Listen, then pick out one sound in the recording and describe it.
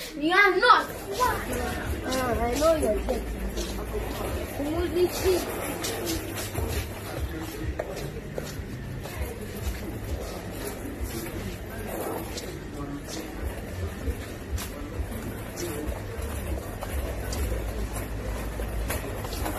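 A small shopping cart rolls and rattles across a hard floor.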